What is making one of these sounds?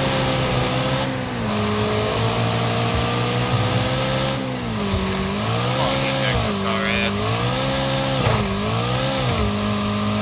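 Tyres skid and crunch on loose dirt.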